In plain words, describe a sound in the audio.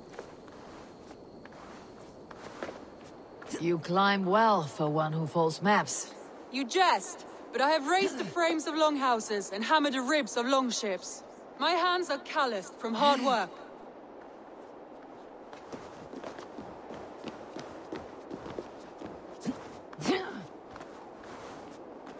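A climber's hands and feet scrape and knock against stone.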